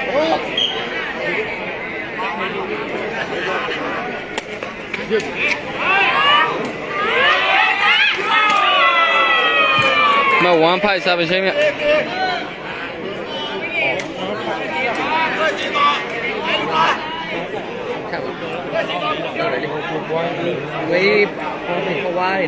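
A crowd of spectators chatters and cheers loudly outdoors.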